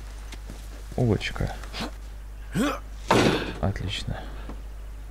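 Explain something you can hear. A man grunts with effort as he jumps.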